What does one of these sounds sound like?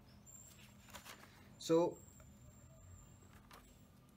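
Notebook pages rustle and flip as they are turned.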